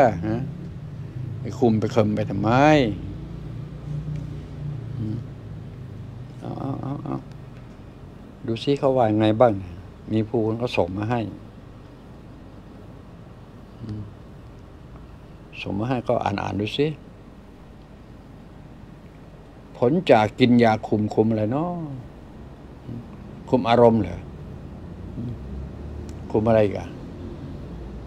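An elderly man speaks calmly and slowly into a nearby microphone, with pauses.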